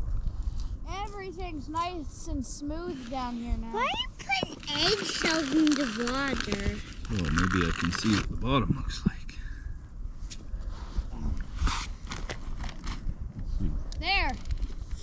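A young child talks in a high voice nearby.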